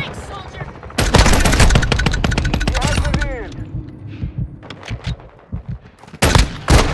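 Pistols fire in rapid, loud bursts.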